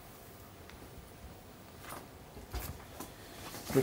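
Paper rustles as a young man handles papers.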